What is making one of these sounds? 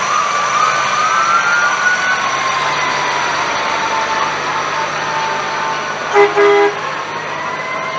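A box truck drives slowly past.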